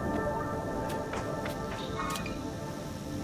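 A short musical chime rings out.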